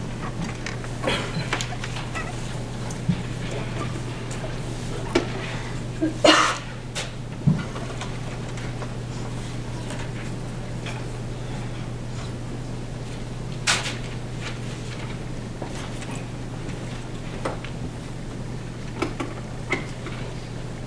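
Objects knock and rustle on a desk close by.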